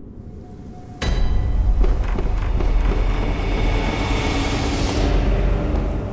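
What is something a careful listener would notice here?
A heavy blade swishes through the air.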